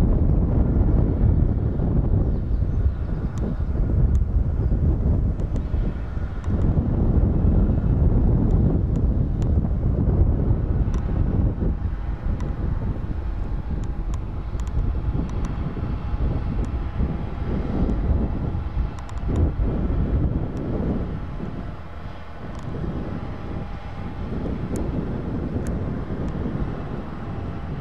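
A heavy truck engine rumbles steadily as it drives slowly by.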